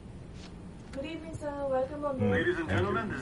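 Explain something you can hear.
A woman greets calmly nearby.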